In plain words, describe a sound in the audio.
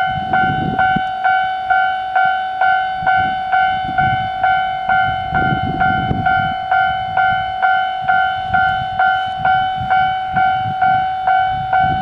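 A diesel train engine idles with a low rumble.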